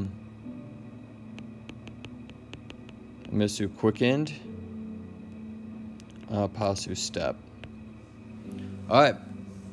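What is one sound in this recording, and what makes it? A stylus taps and scratches lightly on a tablet.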